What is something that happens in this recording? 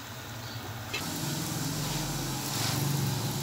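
A flatbread sizzles in oil on a flat griddle.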